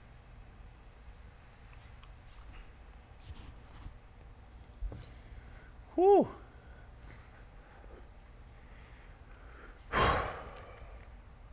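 A young man speaks close into a microphone.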